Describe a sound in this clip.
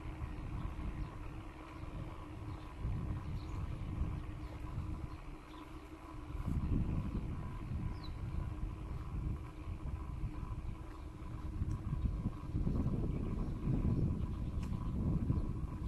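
Bicycle tyres roll along a paved path.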